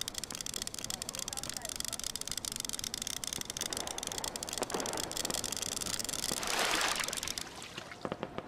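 A fishing reel whirs rapidly as line is wound in.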